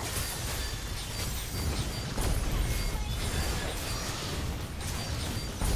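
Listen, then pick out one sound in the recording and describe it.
Fantasy battle effects whoosh, zap and burst in quick succession.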